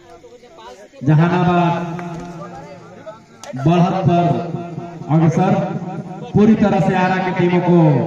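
A young man chants loudly and rapidly in one long breath.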